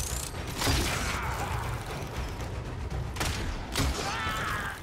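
A bow twangs sharply.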